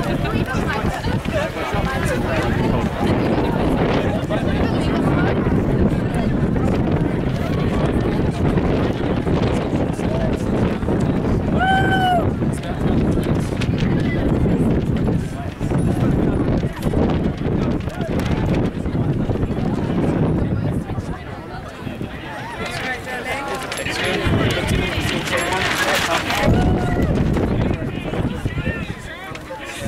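A crowd of men and women chatters outdoors nearby.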